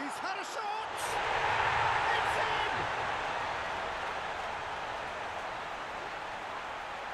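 A large crowd bursts into a loud roaring cheer.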